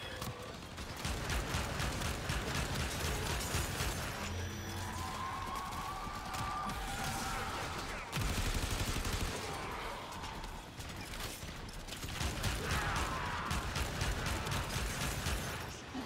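Rapid gunfire rattles and booms throughout.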